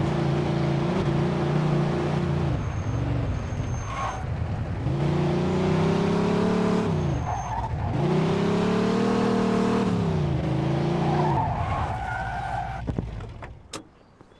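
A car engine revs hard and drops as the car speeds along.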